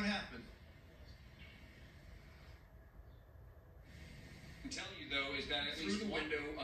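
A middle-aged man reports calmly through a television speaker.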